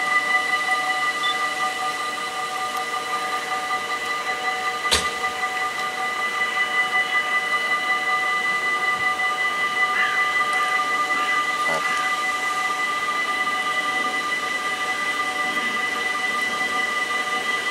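An electric train hums and whines steadily as it slowly approaches.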